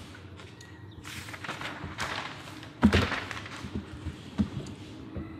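Paper pages rustle and flap as they are handled.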